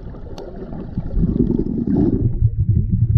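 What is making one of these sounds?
A woman blows bubbles underwater.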